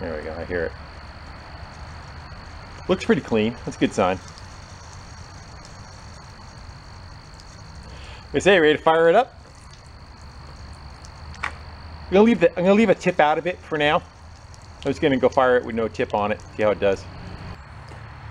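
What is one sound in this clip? Water trickles and splashes onto concrete.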